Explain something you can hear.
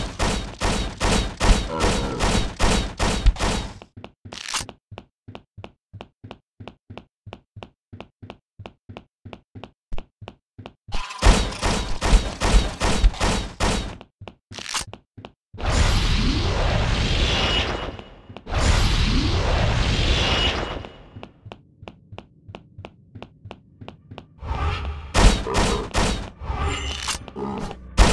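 Blows thud and clash in a fight.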